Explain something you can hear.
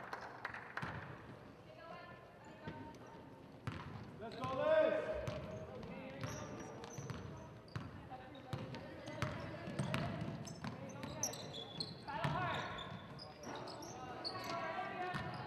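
Young women call out to each other in a large echoing gym.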